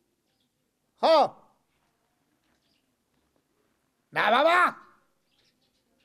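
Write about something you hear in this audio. A man speaks loudly in short, emotional bursts close by.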